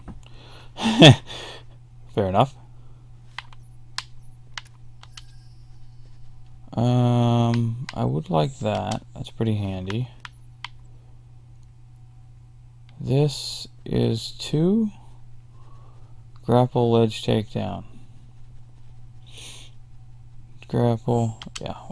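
Soft electronic menu clicks sound as selections change.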